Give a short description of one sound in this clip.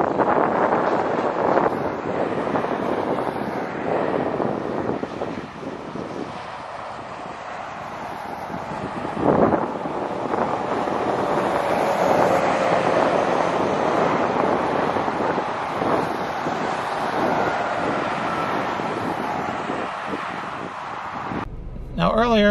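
Traffic roars past steadily outdoors.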